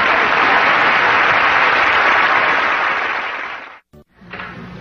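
A studio audience applauds and laughs loudly, then fades.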